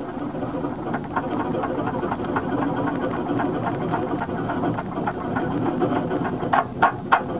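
Tyres crunch over twigs and rough ground.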